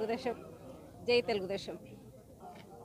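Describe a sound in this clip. A middle-aged woman speaks calmly into microphones.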